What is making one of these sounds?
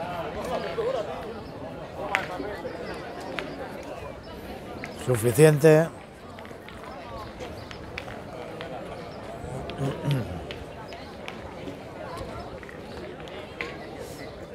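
Metal balls clack against each other.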